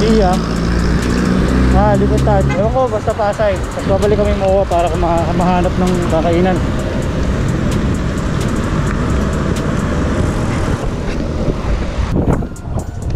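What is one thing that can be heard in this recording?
Vehicle engines hum as traffic passes close by.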